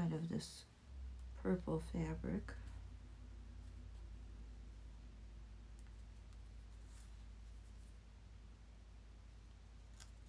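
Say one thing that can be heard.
A pencil scratches lightly along paper.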